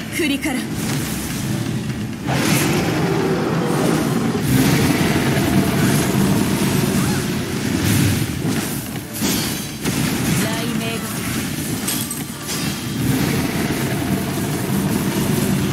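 Blades clash and slash in quick bursts.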